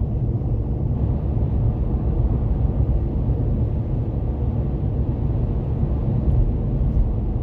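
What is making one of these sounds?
A car cruises at highway speed, with road and engine rumble heard from inside.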